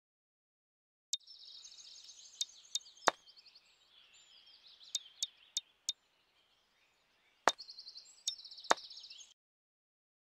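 Short game menu clicks and blips sound as options are selected.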